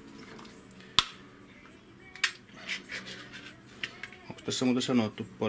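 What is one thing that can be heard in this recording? A small metal tin clicks and taps as it is handled.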